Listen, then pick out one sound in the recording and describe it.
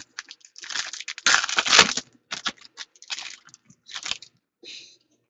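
A foil wrapper crinkles and tears as hands open it.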